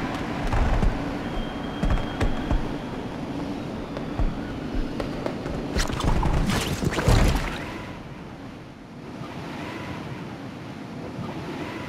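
Wind rushes steadily past during a fall through the air.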